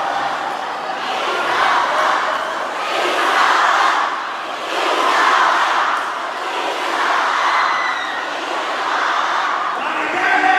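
A large crowd chants in loud rhythmic bursts.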